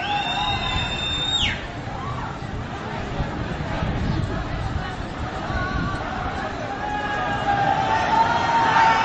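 A crowd shouts and clamours outdoors.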